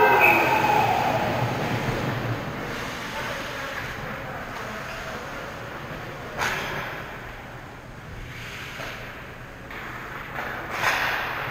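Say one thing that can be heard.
Skate blades scrape and hiss on ice in a large echoing rink.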